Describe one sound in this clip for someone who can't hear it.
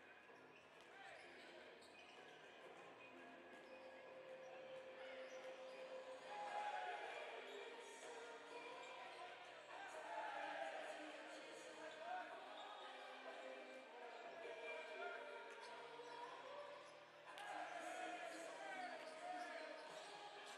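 Basketballs bounce on a hardwood floor in a large echoing hall.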